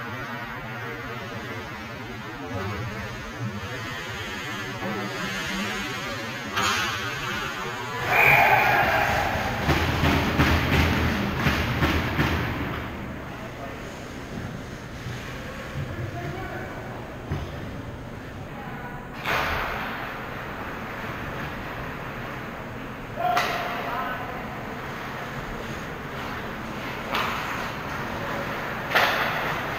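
Skates scrape and hiss across the ice in a large echoing arena.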